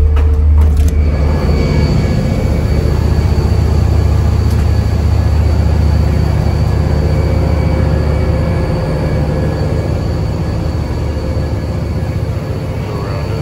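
Wind rushes past outdoors over churning water.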